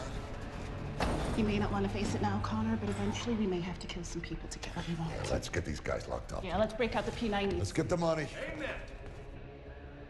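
A woman speaks with a smile nearby.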